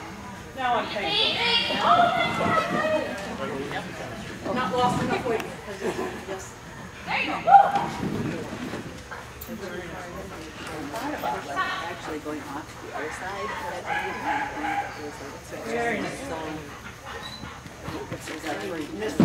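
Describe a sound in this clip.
A woman calls out commands to a dog, her voice echoing in a large hall.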